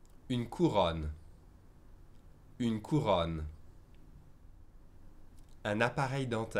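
A man speaks clearly and calmly into a close microphone, in short phrases with pauses.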